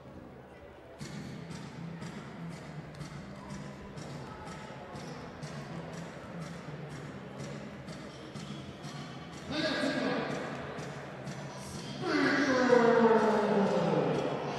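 A basketball bounces steadily on a wooden court in a large echoing hall.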